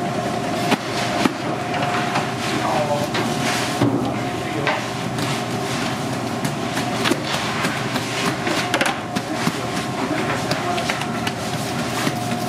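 Hands pat and press soft dough with muffled thuds.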